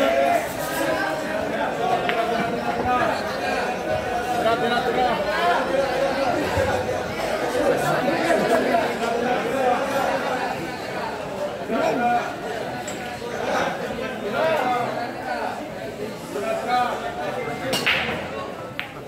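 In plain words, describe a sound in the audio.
Pool balls click together sharply.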